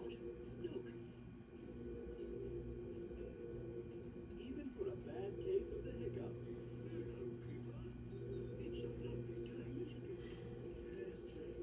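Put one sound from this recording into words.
A television plays a cartoon soundtrack through its speakers.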